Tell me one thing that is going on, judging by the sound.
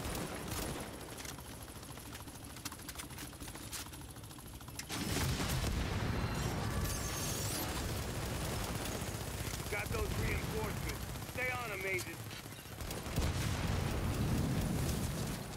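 A helicopter's rotor thumps overhead in a low, steady drone.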